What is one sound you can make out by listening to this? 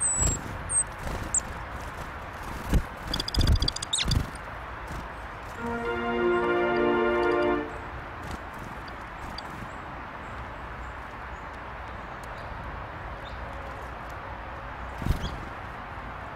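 Wings flutter as small birds land and take off.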